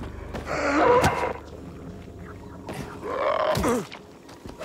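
A wooden bat thuds hard into a body.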